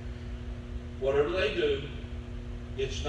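An older man preaches emphatically through a microphone.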